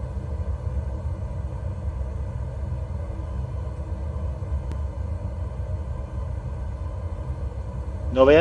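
A jet engine roars steadily with a low rumble.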